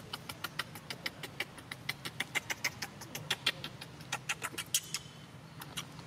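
A baby monkey suckles with quick, wet smacking sounds.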